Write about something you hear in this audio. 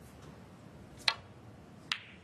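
A cue taps a snooker ball sharply.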